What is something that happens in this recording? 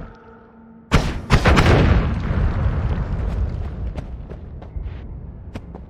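A game explosion booms and rumbles away.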